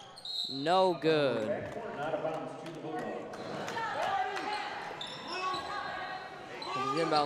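Young women shout to each other across an echoing gym.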